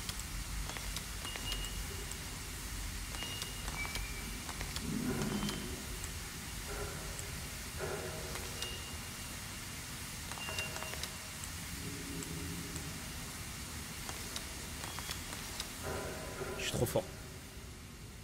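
Metal discs grind and click as they turn.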